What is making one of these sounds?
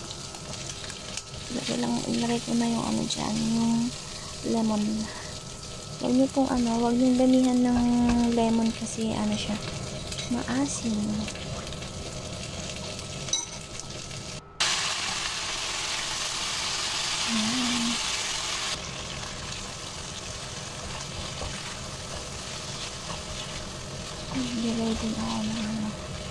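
A spatula scrapes and stirs against a frying pan.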